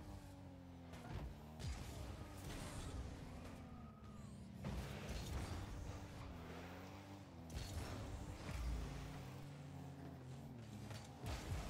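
A car engine hums and revs up and down steadily.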